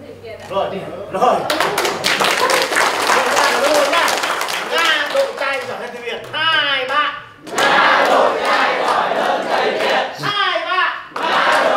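A crowd laughs and cheers.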